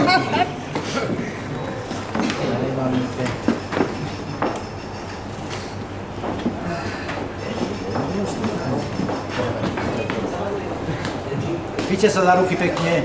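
Adults chat and murmur nearby in a room with some echo.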